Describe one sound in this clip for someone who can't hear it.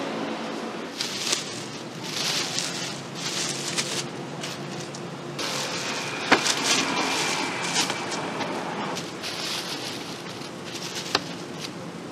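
Plastic bags rustle and crinkle as bananas are handled.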